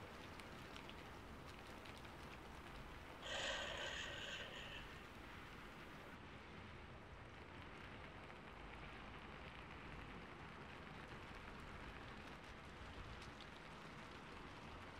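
Hands brush and rustle softly very close to a microphone.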